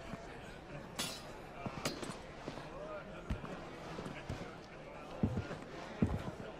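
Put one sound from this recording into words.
Metal armour clinks as a person moves.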